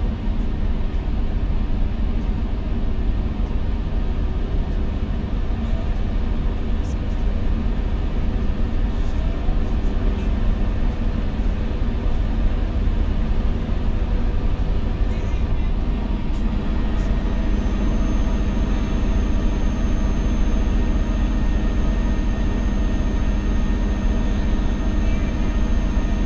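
Tyres roll over a snowy road.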